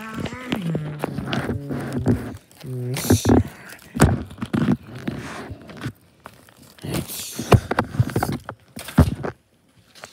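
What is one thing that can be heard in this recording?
Fabric rustles as soft blankets are handled.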